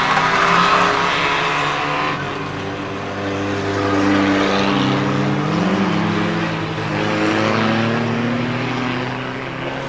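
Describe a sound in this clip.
Tyres hiss on a wet track surface.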